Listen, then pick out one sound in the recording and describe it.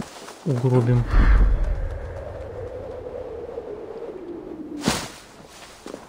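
A body lands with a thud in a pile of dry leaves.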